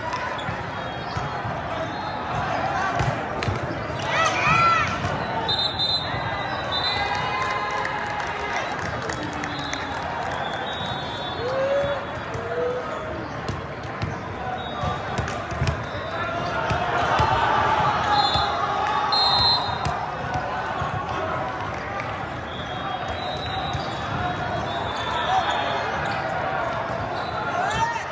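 A volleyball is struck with sharp slaps during a rally.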